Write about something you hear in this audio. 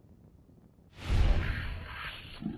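A heavy weapon strikes a body with a loud thud.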